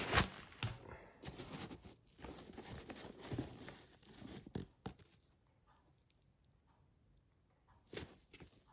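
Hands rustle and handle a sneaker close by.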